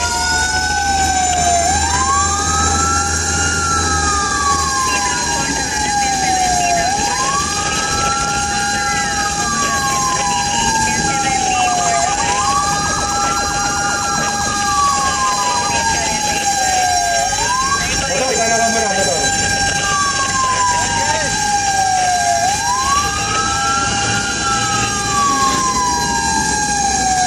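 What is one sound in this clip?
A siren wails close by, rising and falling over and over.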